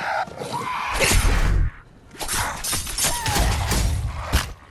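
Blades slash and strike a body with wet thuds.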